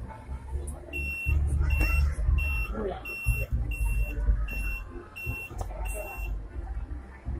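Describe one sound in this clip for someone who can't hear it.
An elevator beeps repeatedly in short, even tones.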